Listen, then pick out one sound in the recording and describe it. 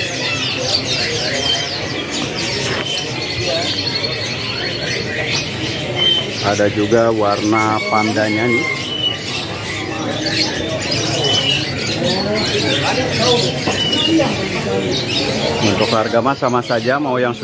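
Many caged birds chirp and whistle all around.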